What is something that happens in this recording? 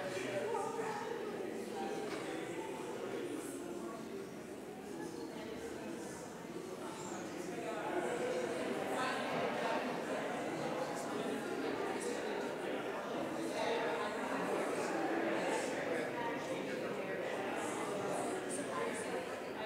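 A crowd of men and women chat and greet each other in a large echoing hall.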